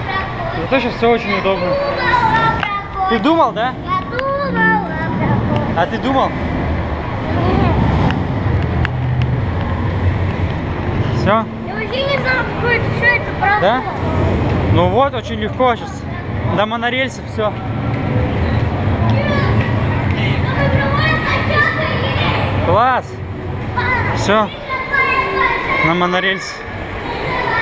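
Voices of a crowd murmur in a large echoing hall.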